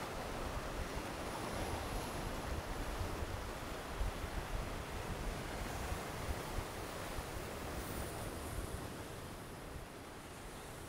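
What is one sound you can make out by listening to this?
Waves wash and splash against rocks with a steady rushing, then grow quieter.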